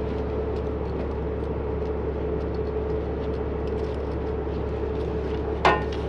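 A ratchet strap clicks as it is tightened.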